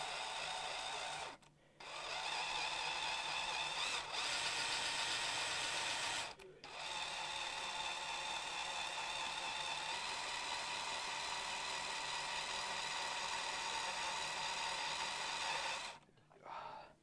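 A scroll saw buzzes steadily as its blade cuts through wood.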